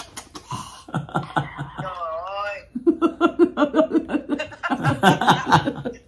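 A man laughs up close.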